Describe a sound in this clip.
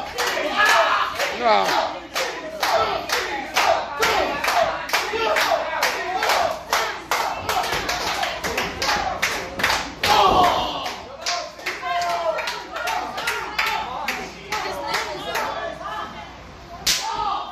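An audience claps in a steady rhythm.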